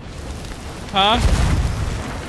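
Cannons fire with deep booms.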